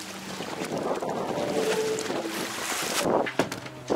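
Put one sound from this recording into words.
Water laps against a stone edge.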